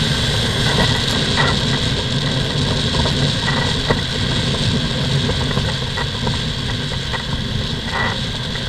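Wind rushes over the microphone outdoors.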